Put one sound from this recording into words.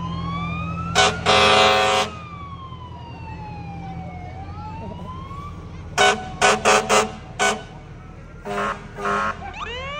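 A fire engine's air horn blasts loudly several times.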